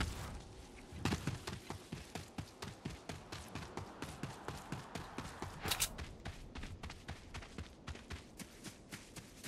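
Keys clack on a computer keyboard.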